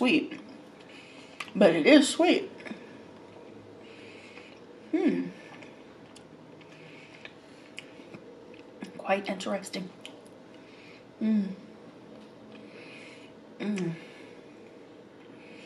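A woman chews food softly and wetly close to a microphone.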